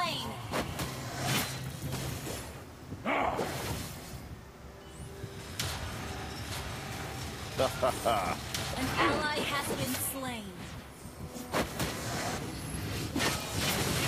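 Video game spells and hits clash and crackle in a fight.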